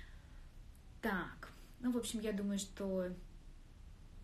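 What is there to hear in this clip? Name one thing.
A young woman speaks calmly and brightly, close by.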